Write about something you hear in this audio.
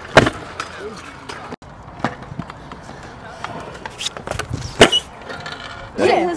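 Scooter wheels roll and clatter on concrete.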